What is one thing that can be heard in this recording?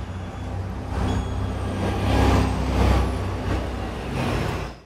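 A bus drives past close by.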